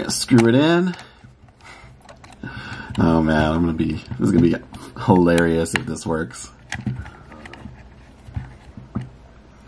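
A small screwdriver turns a screw with faint ticking.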